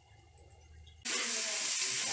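Food sizzles as it fries in a pan.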